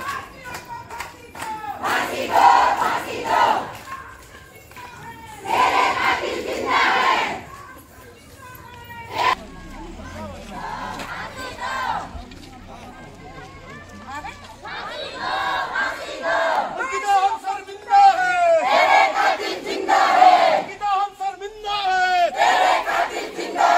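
A crowd of women chants slogans loudly in unison outdoors.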